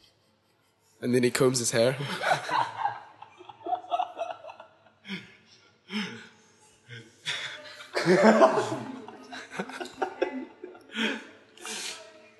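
A young man speaks into a microphone, laughing as he talks.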